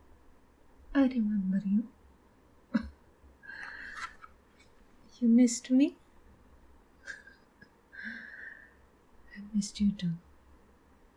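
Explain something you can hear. A woman speaks softly and slowly through a microphone.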